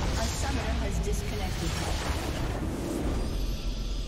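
Game combat effects crash and blast loudly.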